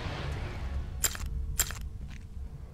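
Short menu clicks sound.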